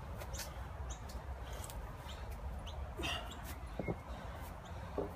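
Feet thud softly on grass as a man jumps.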